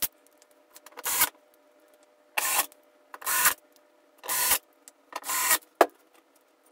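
An electric screwdriver whirs in short bursts.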